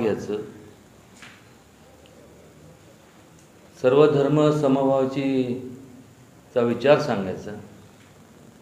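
A middle-aged man speaks calmly into a nearby microphone, in short bursts with pauses.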